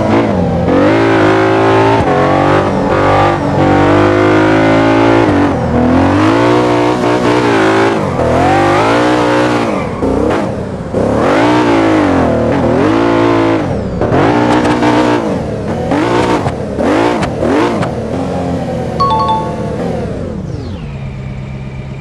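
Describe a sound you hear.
A high-revving sports car engine roars, its pitch rising and falling as it shifts gears.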